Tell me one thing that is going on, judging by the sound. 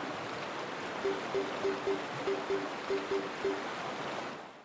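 A game menu gives short beeps as the cursor moves between choices.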